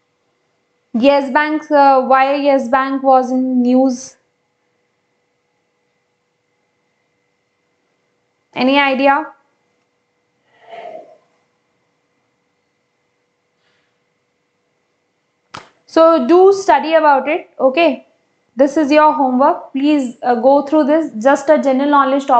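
A young woman speaks calmly into a close microphone, explaining in bursts with long pauses.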